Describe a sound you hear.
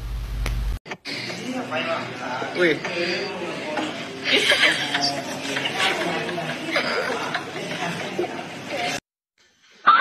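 A young man chats nearby in a noisy room.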